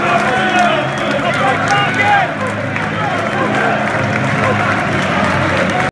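Footballers clap their hands above their heads.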